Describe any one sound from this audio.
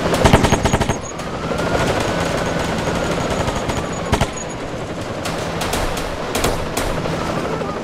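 An engine drives along.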